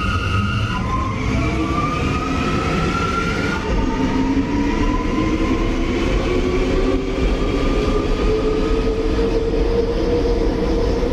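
A subway train's electric motors whine, rising in pitch as the train pulls away.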